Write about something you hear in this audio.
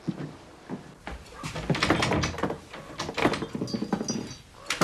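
A door handle rattles and clicks.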